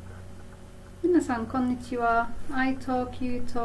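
A woman speaks calmly and warmly, close to a microphone.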